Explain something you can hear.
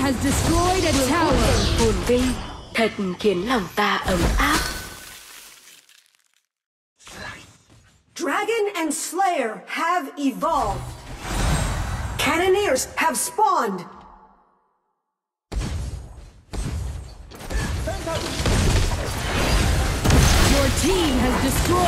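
Battle sound effects clash and burst in quick succession.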